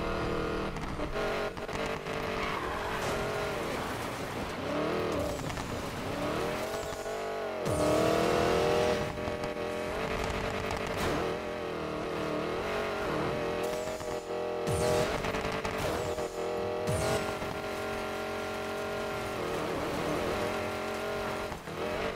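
A car engine roars and revs up and down at high speed.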